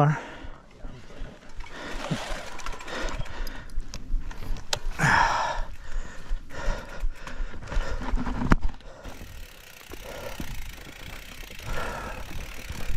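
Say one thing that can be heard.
A bicycle frame and chain clatter over bumps.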